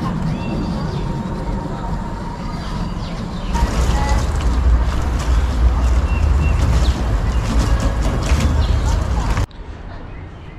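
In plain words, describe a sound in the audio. Water splashes from a tap into a metal sink.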